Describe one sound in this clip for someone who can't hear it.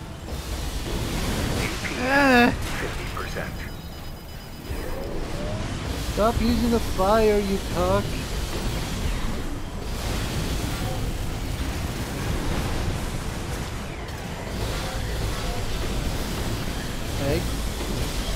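Laser beams zap and crackle.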